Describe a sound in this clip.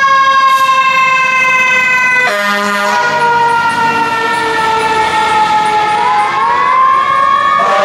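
A fire engine's engine rumbles as it drives off.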